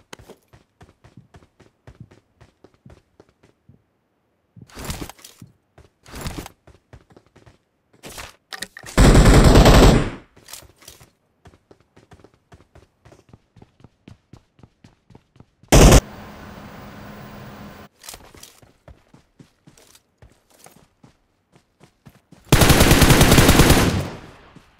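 Quick footsteps patter steadily.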